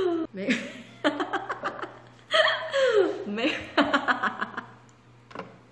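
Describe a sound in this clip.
A young woman laughs loudly and giddily close to a microphone.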